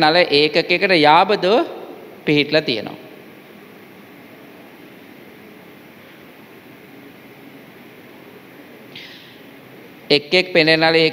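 A young man reads aloud in an echoing room, pausing between phrases.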